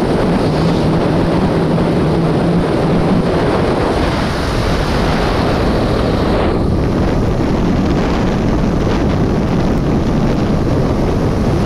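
Wind buffets loudly against a moving vehicle.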